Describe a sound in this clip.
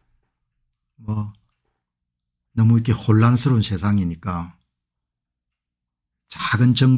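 An elderly man speaks calmly and close to a microphone, with pauses.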